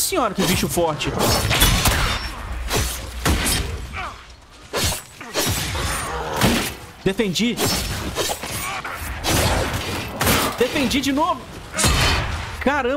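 A bear growls and roars.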